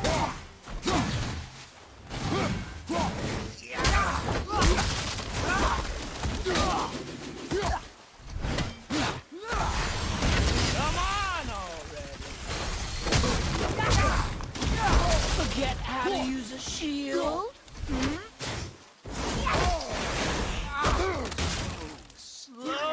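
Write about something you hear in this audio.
Creatures snarl and growl.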